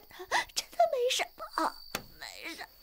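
A young woman speaks in a frightened, pleading voice close by.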